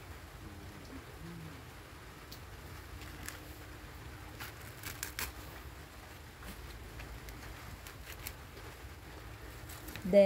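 Dry coconut fibres rustle and crackle as gloved hands pull them apart.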